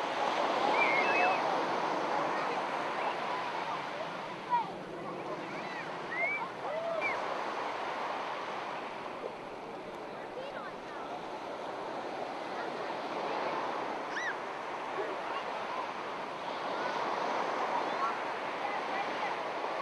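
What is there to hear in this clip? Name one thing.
Small waves wash onto a beach.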